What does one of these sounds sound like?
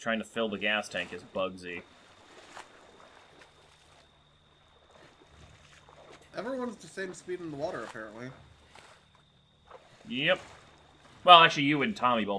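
Water splashes as a swimmer strokes through a lake.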